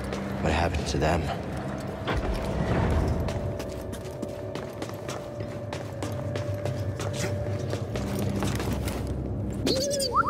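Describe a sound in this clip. Quick footsteps clatter on a metal floor.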